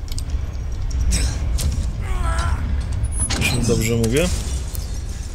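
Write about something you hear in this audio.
A heavy metal door creaks as it is pulled open.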